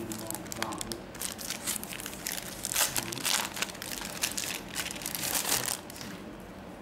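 A plastic bag crinkles and rustles as hands handle it.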